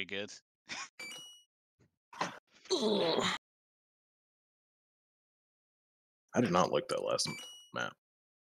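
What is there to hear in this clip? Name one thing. A short electronic chime rings from a game.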